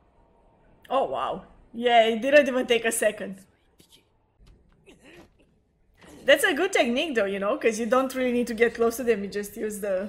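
A young woman talks excitedly and laughs close by.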